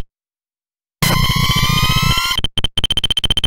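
A chiptune motorcycle engine revs with rising electronic tones.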